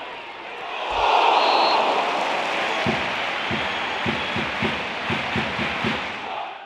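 A large crowd suddenly roars and then claps in rhythm.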